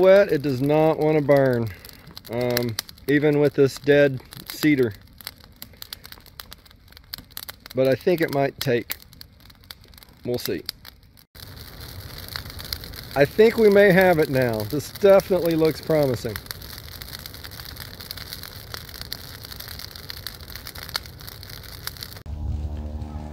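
A fire crackles and pops.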